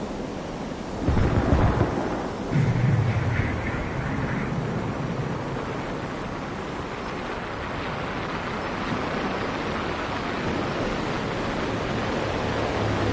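A jet engine roars louder and deeper as the afterburner kicks in.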